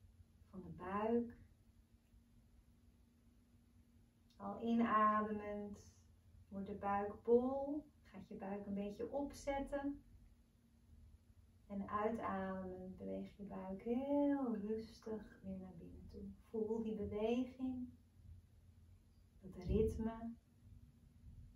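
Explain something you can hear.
A young woman speaks slowly and calmly, close by.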